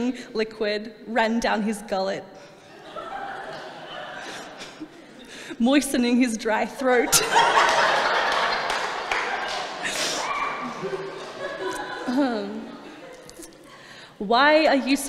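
A woman reads aloud into a microphone.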